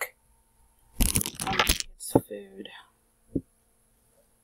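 Small glass bottles clink and knock against a table.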